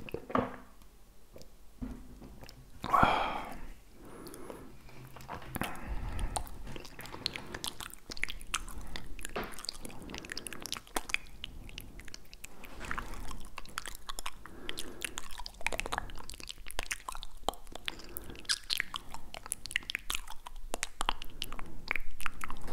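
A man makes soft mouth clicks and smacks close to a microphone.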